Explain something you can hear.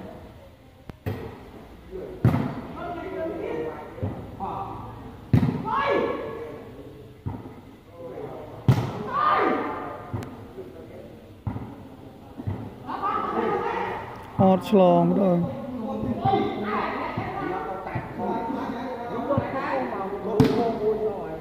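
A ball is kicked with sharp thumps.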